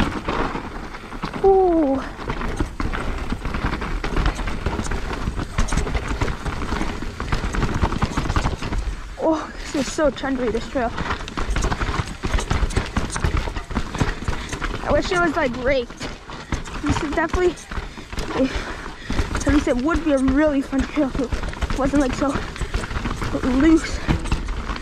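Bike tyres crunch and rattle over a rocky dirt trail.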